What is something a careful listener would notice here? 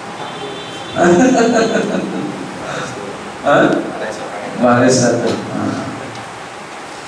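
A man laughs into a headset microphone.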